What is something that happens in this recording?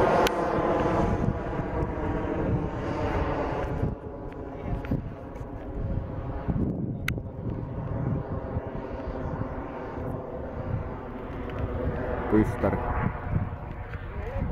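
A jet engine roars steadily overhead.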